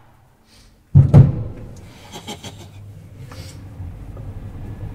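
An old elevator car rumbles and hums as it moves.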